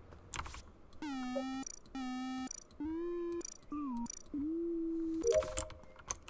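Electronic game tones beep as levels rise, one after another.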